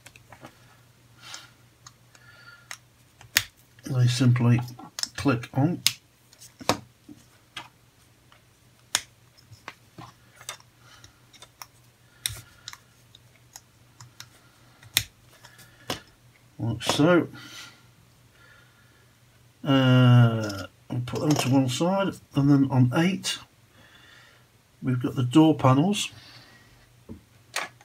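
Small plastic pieces click and snap together.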